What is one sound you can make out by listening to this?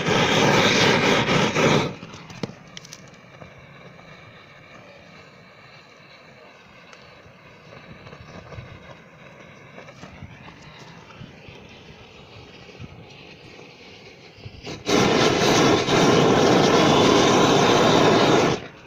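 A gas torch roars loudly with a steady rushing blast.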